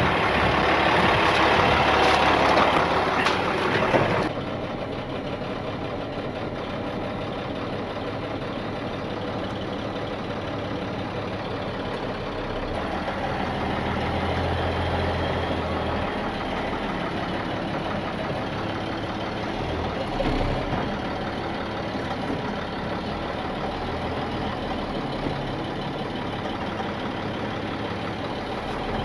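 A heavy truck engine idles nearby with a steady low rumble.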